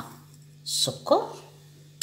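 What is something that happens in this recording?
Sugar pours softly from a small bowl into a glass bowl.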